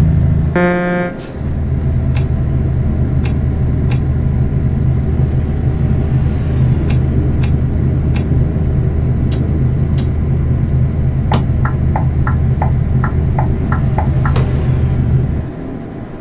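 A truck engine hums with a deep, steady drone.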